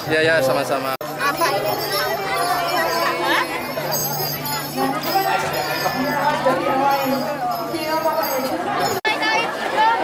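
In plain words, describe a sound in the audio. A crowd of men, women and children chatters all around outdoors.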